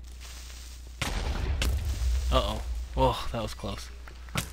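A blast booms and rumbles.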